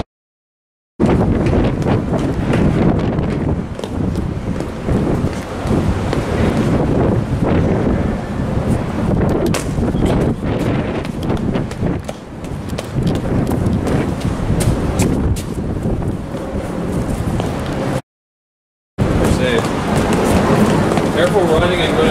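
Footsteps clang on metal stair steps.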